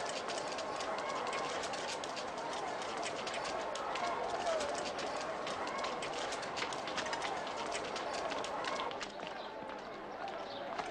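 Footsteps of a marching group shuffle and clatter on stone.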